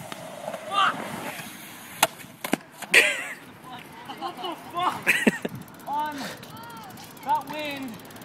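A skateboard clatters and slaps on concrete.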